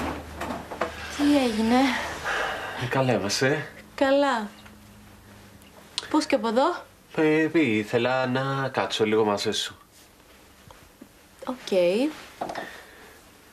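A young woman answers quietly, close by.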